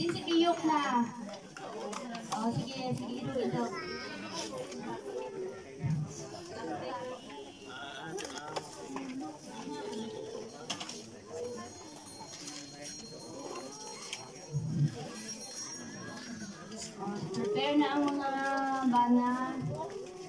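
A crowd of men and women murmurs and talks nearby outdoors.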